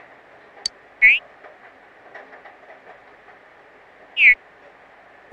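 A menu chime sounds.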